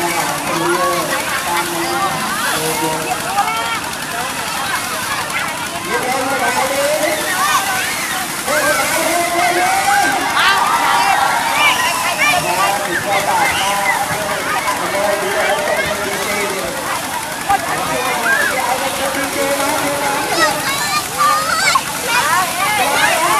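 Water sprays and splashes down onto the crowd.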